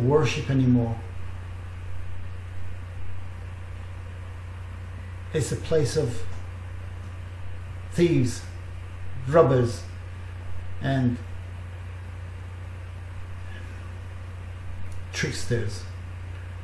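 A middle-aged man speaks calmly and slowly, close to a microphone, with pauses.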